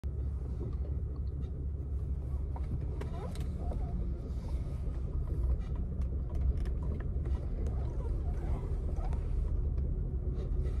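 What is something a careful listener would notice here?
A car engine and road noise rumble steadily from inside the car.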